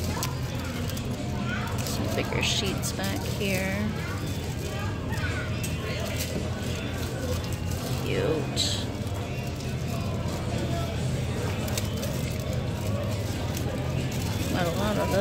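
Plastic packets crinkle and rustle as a hand flips through them.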